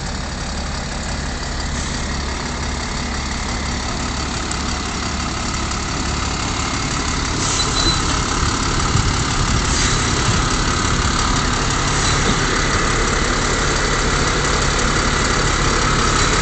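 A truck's diesel engine idles and rumbles close by.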